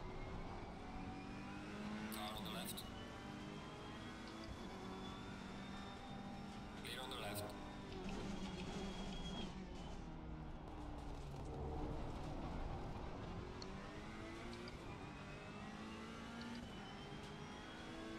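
A racing car engine roars, rising and falling as it shifts gears.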